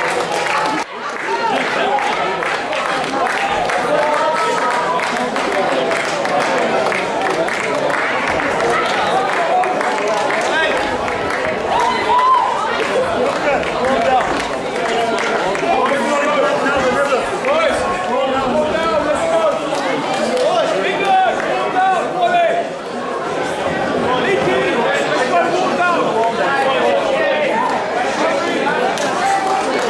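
A crowd of men and women chatters loudly nearby, outdoors.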